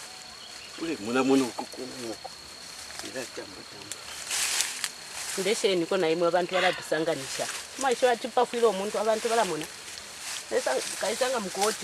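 A woman speaks in a low voice, close by.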